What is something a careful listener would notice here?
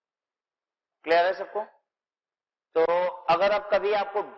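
A man speaks clearly into a clip-on microphone, explaining with animation.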